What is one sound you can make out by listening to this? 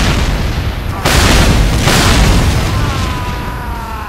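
Gunshots crack and boom in quick bursts.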